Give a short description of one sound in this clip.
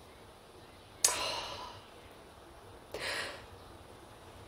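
A young woman sighs loudly.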